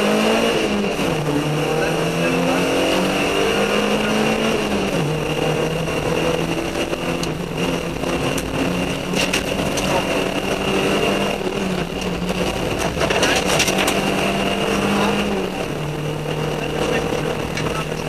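Tyres roll over a paved road.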